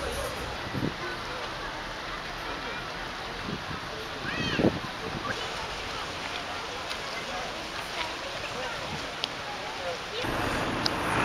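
A shallow stream trickles and flows outdoors.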